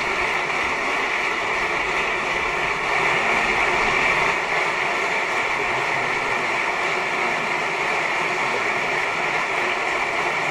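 A large audience applauds steadily and loudly in an echoing hall.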